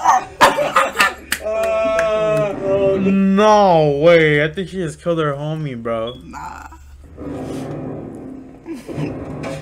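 Two young men laugh loudly.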